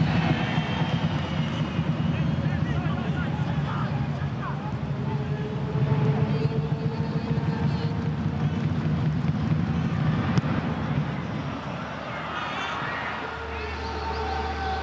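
A stadium crowd roars and chants steadily outdoors.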